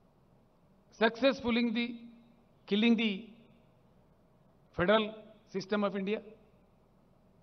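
An elderly man speaks firmly into a microphone in short bursts, heard through loudspeakers.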